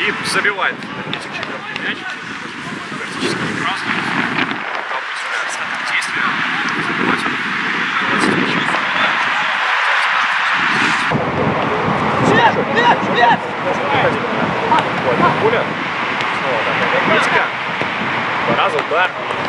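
Young men shout to each other across an outdoor sports pitch, far off.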